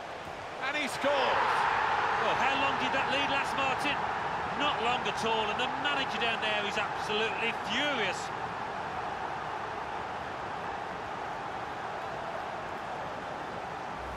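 A large crowd roars and cheers loudly in a stadium.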